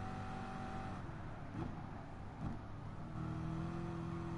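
A racing car engine drops in pitch as the car brakes for a corner.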